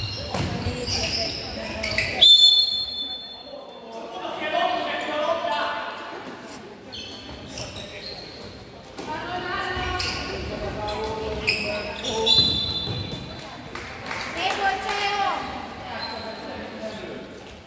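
A ball bounces on the floor.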